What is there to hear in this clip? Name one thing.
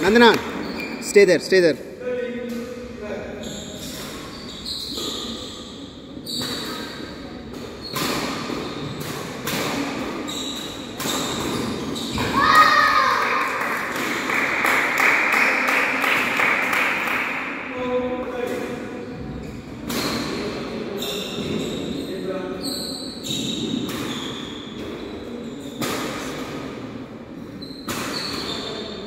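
Children chatter and call out in an echoing hall.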